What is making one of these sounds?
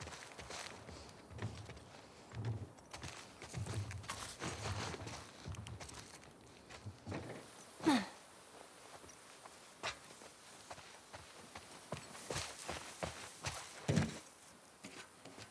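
Footsteps rustle through straw and grass.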